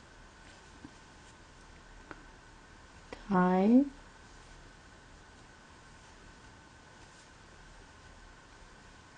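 A crochet hook softly pulls yarn through stitches.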